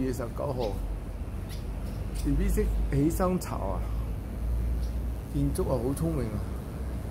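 A small bird chirps and twitters close by.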